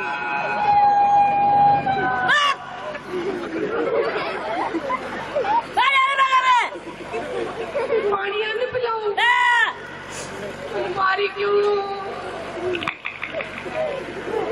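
A woman sings in a high voice through a microphone and loudspeakers.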